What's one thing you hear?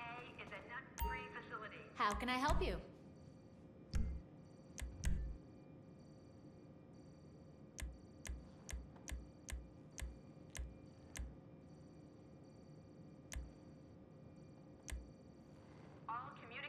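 Menu selections tick and click in short beeps.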